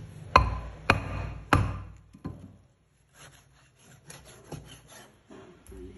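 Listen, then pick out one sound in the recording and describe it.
A cleaver chops sharply on a wooden board.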